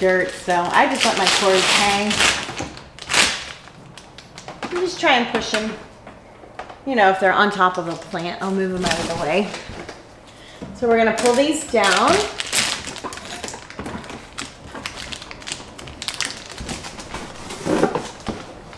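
Plastic parts click and rattle as a woman handles them.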